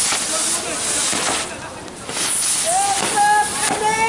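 Fireworks crackle and pop sharply nearby.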